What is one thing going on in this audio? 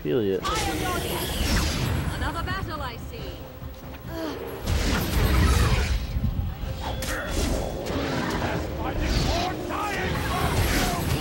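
Swords clash and strike in a fierce battle.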